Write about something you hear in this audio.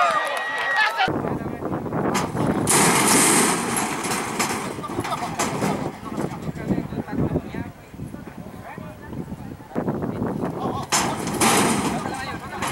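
Men call out to each other outdoors.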